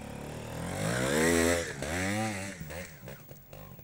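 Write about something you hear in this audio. A motorcycle engine revs loudly up and down close by.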